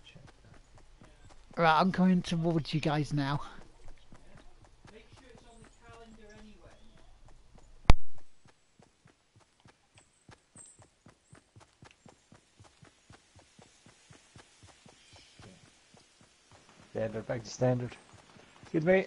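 Quick footsteps patter on grass.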